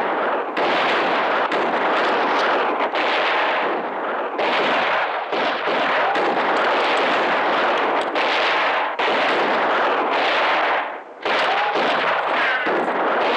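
A horse gallops over rocky ground.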